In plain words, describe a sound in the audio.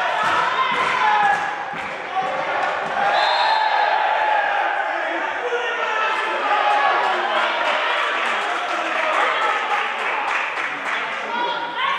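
Young women shout and call to each other in a large echoing hall.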